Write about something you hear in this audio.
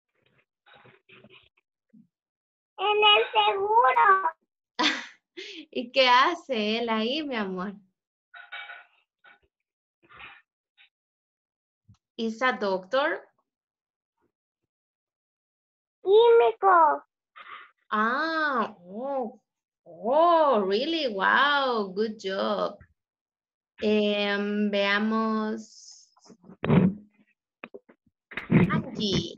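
Young children talk over an online call.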